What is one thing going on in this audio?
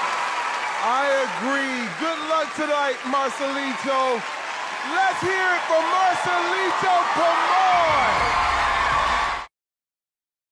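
An audience cheers in a large hall.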